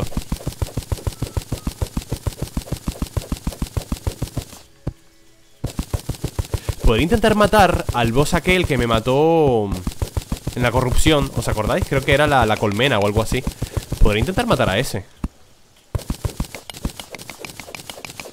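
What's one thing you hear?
A pickaxe chips rapidly at stone in quick, even knocks.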